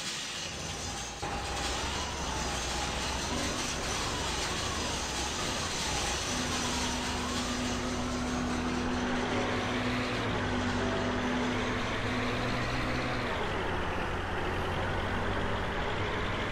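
A truck engine rumbles steadily and revs as the truck drives.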